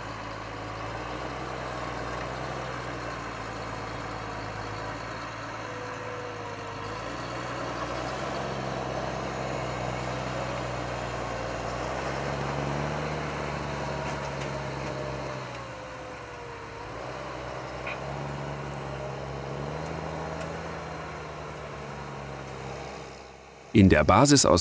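A tractor engine rumbles steadily close by, its pitch rising and falling.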